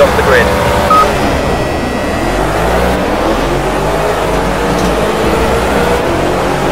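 Racing car engines accelerate hard away from the start.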